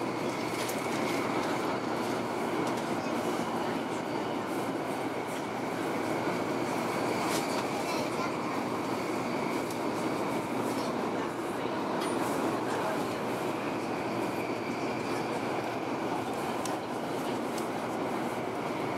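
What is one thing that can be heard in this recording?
A train rumbles steadily along the track, heard from inside the carriage.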